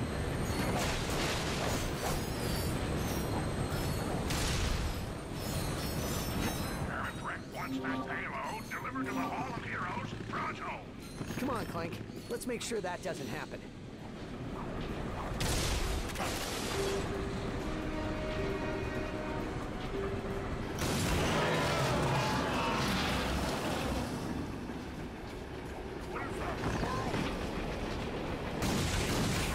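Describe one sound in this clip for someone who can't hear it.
Video game music and sound effects play.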